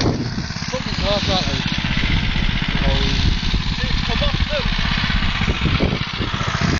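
A small go-kart engine buzzes and rattles close by.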